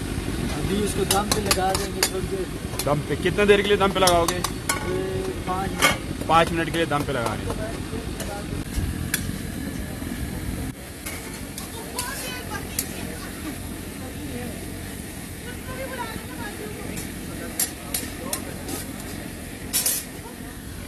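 A metal ladle scrapes and clinks against a wok.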